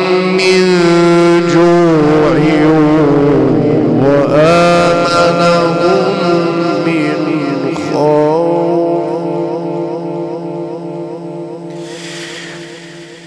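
A man chants in long, wavering melodic phrases through a loudspeaker, slowly fading toward the end.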